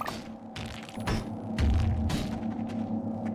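A mining tool grinds against rock with crackling sparks.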